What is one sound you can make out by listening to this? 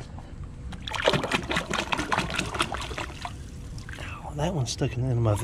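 A hand splashes and stirs in the water.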